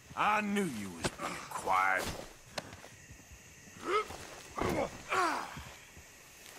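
A man grunts and groans in a struggle.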